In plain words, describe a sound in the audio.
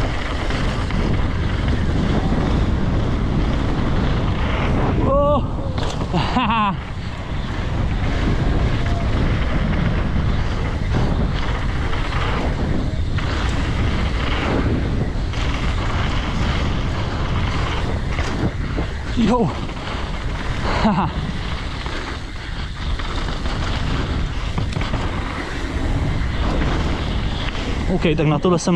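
Wind rushes loudly past a rider descending at speed.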